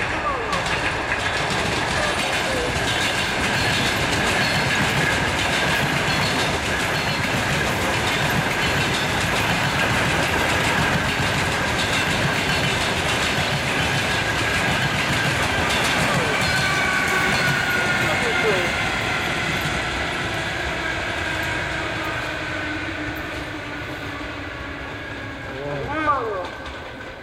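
A train rumbles and clatters along the rails nearby.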